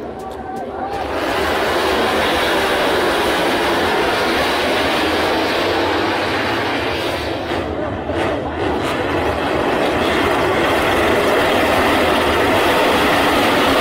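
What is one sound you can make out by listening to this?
Motorcycle engines roar loudly past on a race track.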